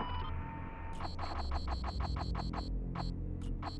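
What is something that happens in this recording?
Game menu buttons tick rapidly as a count goes up.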